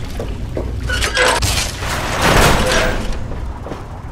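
A heavy metal door slides open with a loud hiss.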